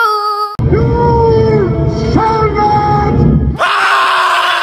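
An elderly man shouts loudly.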